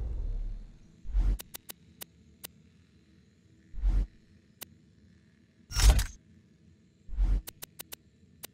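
Soft whooshes swish as menu panels slide.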